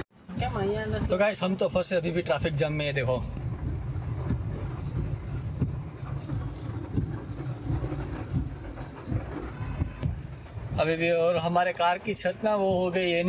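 A man speaks calmly and close by, inside a car.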